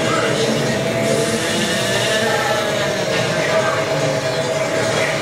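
Upbeat game music plays from a television speaker.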